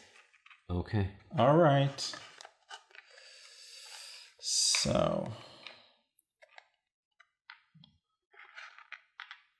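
Game pieces and cards clatter softly on a table.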